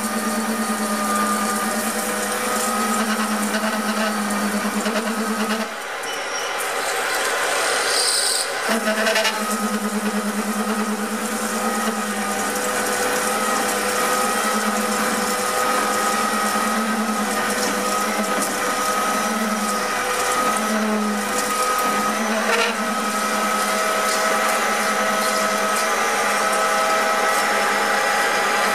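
A cutting tool scrapes and whines against spinning metal.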